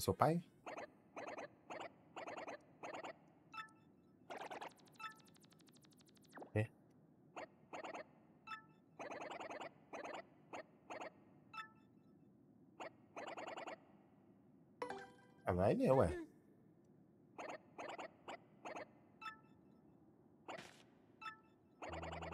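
Quick electronic blips chirp in bursts.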